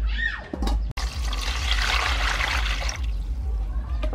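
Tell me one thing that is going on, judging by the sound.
Water pours into a metal bowl.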